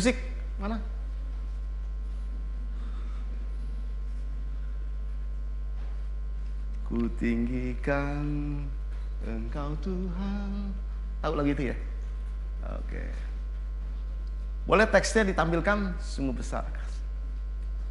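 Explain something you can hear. A middle-aged man speaks with animation through a microphone, pausing often.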